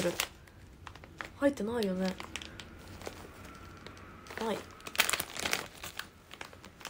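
A plastic package crinkles in a hand.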